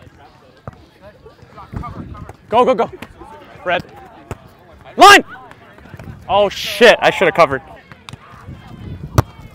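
A volleyball thuds as players hit it.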